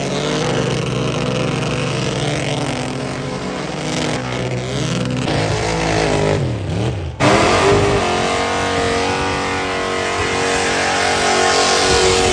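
Tyres spin and screech on pavement.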